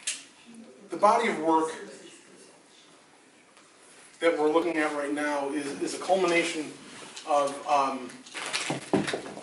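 A middle-aged man speaks calmly and haltingly in a quiet room.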